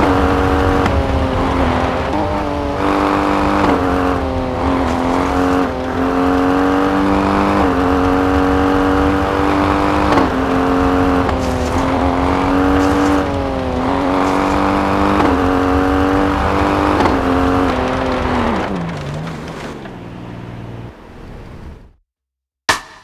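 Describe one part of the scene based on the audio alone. A rally SUV engine in a video game revs hard and rises and falls through gear changes.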